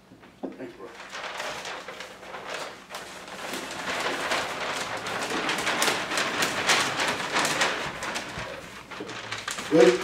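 A large paper map crinkles and rustles as it is folded.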